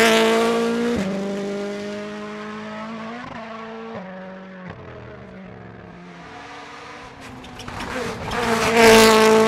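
A rally car engine roars in the distance and fades.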